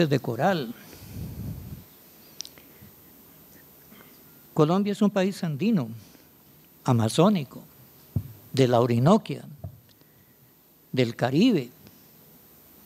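An elderly man speaks slowly into a microphone in a large echoing hall, with long pauses.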